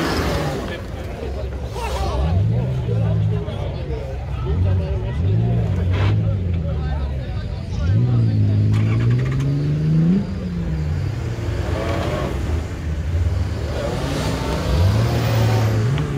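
A truck engine revs hard, rising and falling in pitch.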